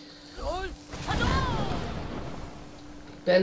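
A magic frost blast hisses and crackles.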